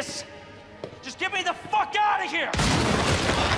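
A man shouts desperately.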